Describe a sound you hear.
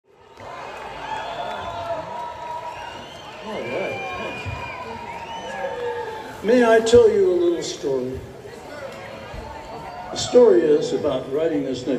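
A live band plays music through loudspeakers in a large open venue.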